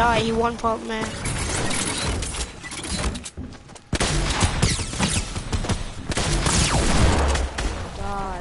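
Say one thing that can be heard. Sharp thuds and cracks of game building and hitting effects ring out.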